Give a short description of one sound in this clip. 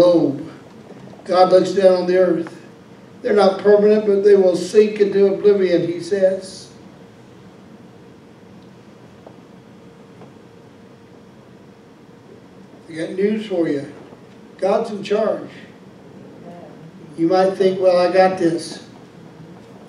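A man speaks calmly into a microphone, pausing between phrases.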